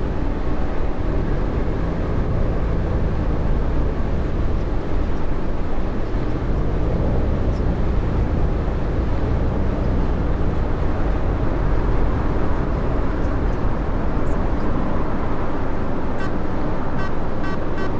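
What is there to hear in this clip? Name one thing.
A bus engine hums steadily and rises in pitch as it speeds up.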